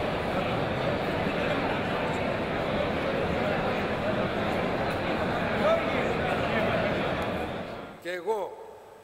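A crowd chatters loudly all around.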